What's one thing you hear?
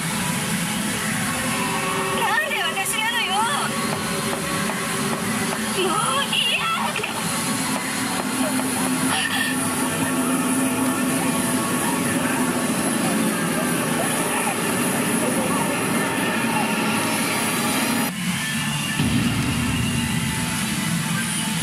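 Steel balls rattle and clatter inside a pachinko machine.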